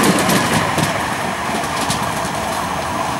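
An electric tram approaches along the track.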